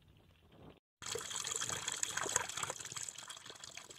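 Water trickles and splashes over stones.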